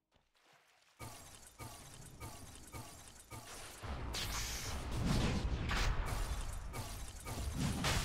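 Weapon blows land in a quick steady rhythm.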